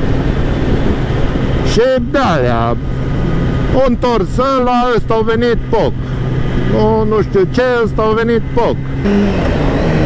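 A motorcycle engine revs hard and shifts through gears at speed.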